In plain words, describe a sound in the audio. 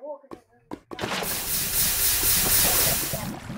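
Water splashes and hisses loudly over lava.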